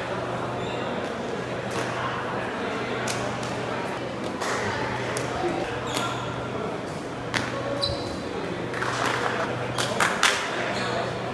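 Shuttlecocks are struck with rackets in a large echoing hall.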